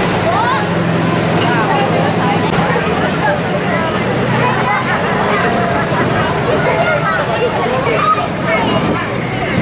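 A crowd of people chatter and call out nearby outdoors.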